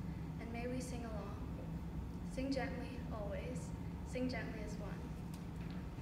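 A young woman speaks calmly into a microphone in a large echoing hall.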